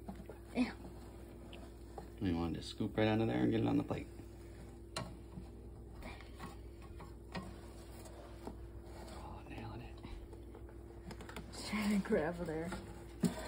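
A metal spatula scrapes and clicks against a wire rack.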